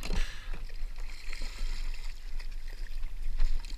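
Water splashes briefly near the kayak.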